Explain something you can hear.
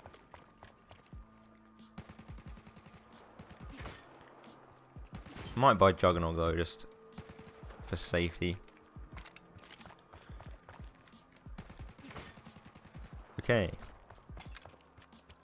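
A rapid-fire gun shoots in short bursts.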